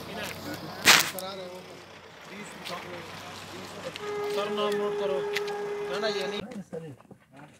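Men talk in low voices outdoors at night.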